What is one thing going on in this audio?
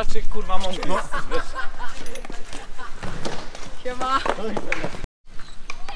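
A scooter's wheels roll and clatter over concrete.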